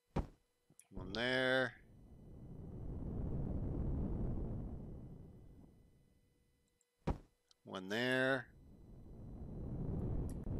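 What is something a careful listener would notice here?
A jetpack thruster rumbles and hisses, swelling and fading.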